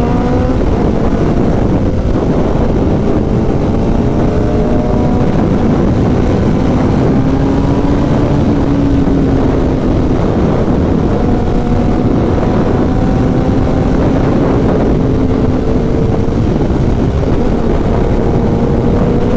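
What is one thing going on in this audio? Wind blows hard across an open outdoor space.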